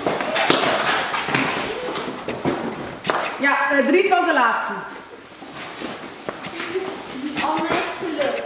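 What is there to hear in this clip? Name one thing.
Children shout and squeal excitedly in an echoing hall.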